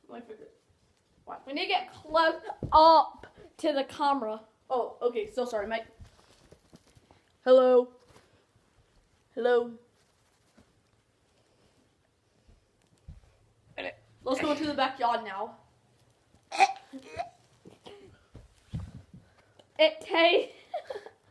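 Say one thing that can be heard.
A boy speaks playfully in a puppet voice close by.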